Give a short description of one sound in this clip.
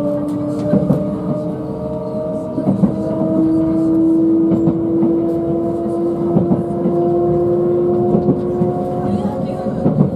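Train wheels clatter over rail joints at a regular beat.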